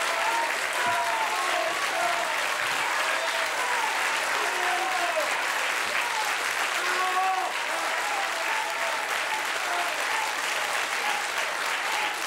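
A large crowd claps and applauds loudly.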